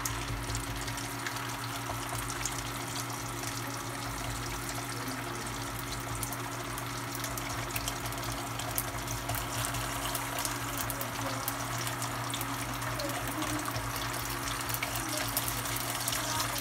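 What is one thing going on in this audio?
Oil sizzles and crackles in a hot pan.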